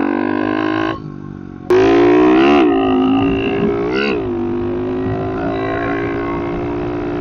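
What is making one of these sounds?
A dirt bike engine buzzes loudly, revving up and dropping as the gears change.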